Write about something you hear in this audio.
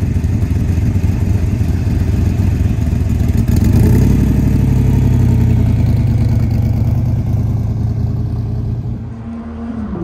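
A car engine rumbles loudly nearby, revs up and fades as the car pulls away.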